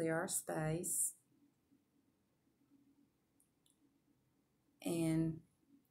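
A middle-aged woman speaks calmly close to the microphone, with pauses.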